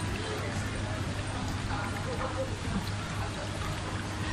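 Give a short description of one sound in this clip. Water bubbles and splashes in a tank.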